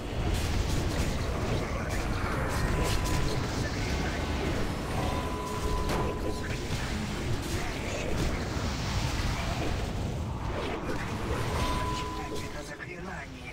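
Spell effects and weapon hits clash in a loud game battle.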